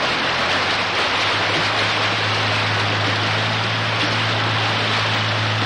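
Floodwater rushes and churns loudly over rocks.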